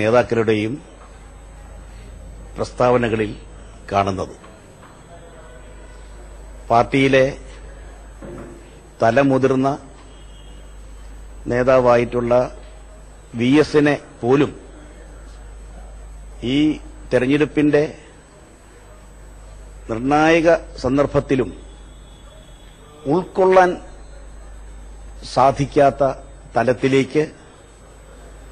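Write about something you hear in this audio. A middle-aged man speaks into microphones in short, measured phrases with pauses between them.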